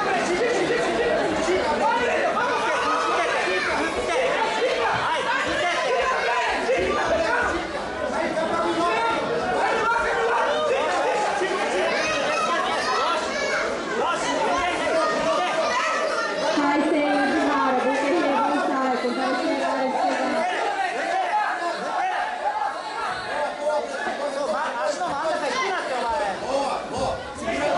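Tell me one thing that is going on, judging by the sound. A crowd of children and adults chatters and shouts encouragement.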